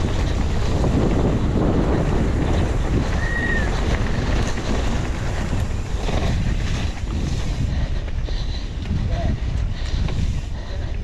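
Wind rushes loudly past the rider outdoors.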